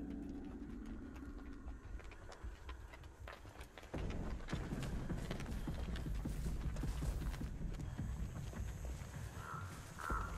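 Footsteps crunch quickly through grass and dirt.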